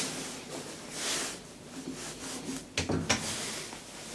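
A lift button clicks under a finger.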